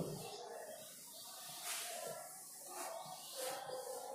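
A duster rubs across a chalkboard.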